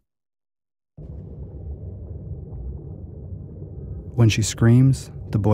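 Water churns with a deep, muffled rumble, heard from underwater.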